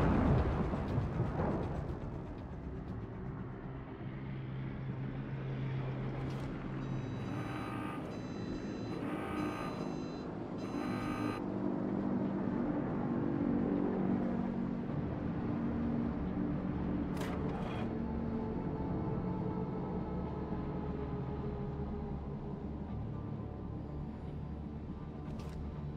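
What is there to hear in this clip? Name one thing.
Sea water washes along a ship's hull.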